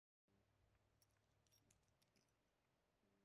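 Metal screws clink softly in a hand.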